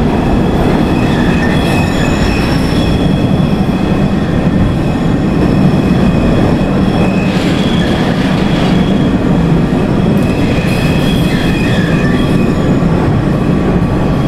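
Train wheels squeal on the curving rails.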